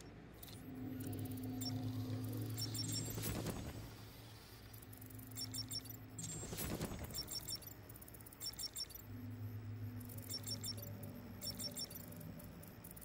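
An electronic device hums in low steady bursts.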